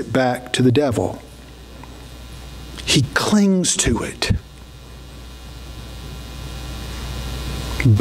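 A middle-aged man speaks calmly into a microphone in a large echoing room.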